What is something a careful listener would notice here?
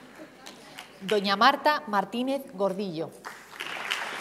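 A woman speaks briefly through a loudspeaker in an echoing hall.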